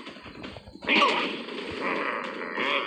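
A heavy weapon swings and strikes with a thud.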